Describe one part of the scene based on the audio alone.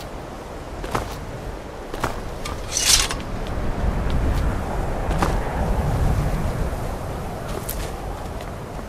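Footsteps crunch on snowy stone.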